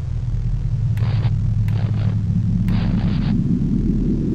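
A television hisses with static in short bursts.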